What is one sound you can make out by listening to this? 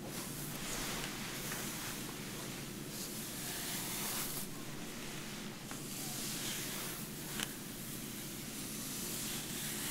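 A comb rustles through wet hair.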